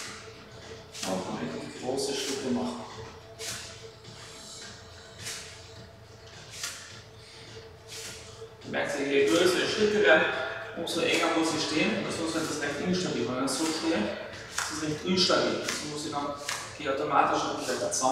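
A man speaks calmly, instructing, in an echoing room.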